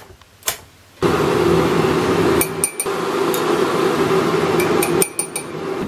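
A kettle rumbles steadily as the water heats.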